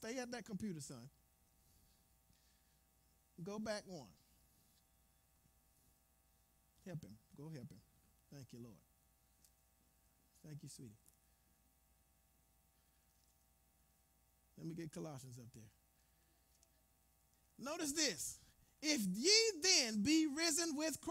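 A man speaks in short bursts through a microphone, with long pauses between phrases.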